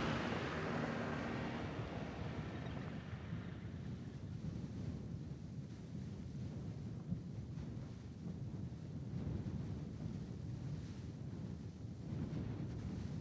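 A van engine drones steadily as the van drives through snow.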